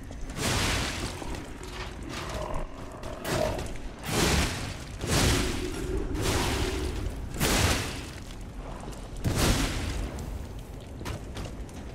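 Heavy weapon blows clash and thud in bursts.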